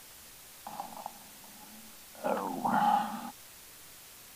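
An older man speaks briefly and calmly nearby.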